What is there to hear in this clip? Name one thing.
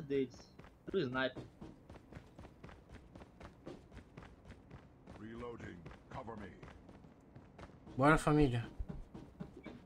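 Footsteps patter quickly.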